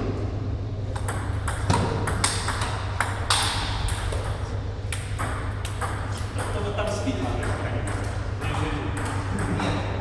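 Table tennis balls click sharply on paddles and tables.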